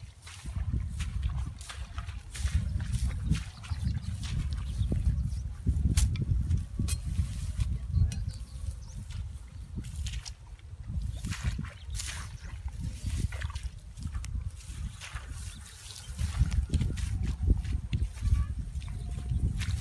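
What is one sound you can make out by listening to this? Footsteps squelch and rustle through wet grass.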